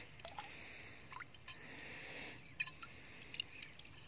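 A hand splashes in shallow water.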